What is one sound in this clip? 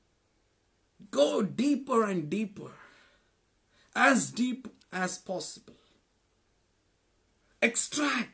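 A man speaks calmly and expressively, close by, in short bursts with pauses.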